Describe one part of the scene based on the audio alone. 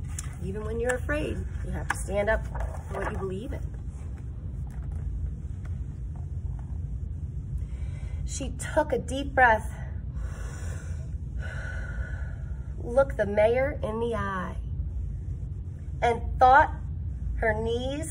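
A woman reads aloud close by, in an expressive voice.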